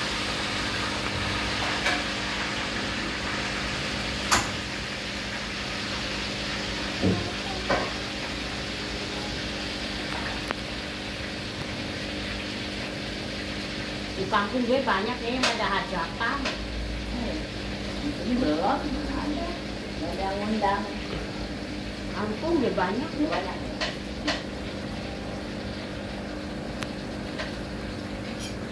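An aquarium air pump hums steadily while bubbles gurgle.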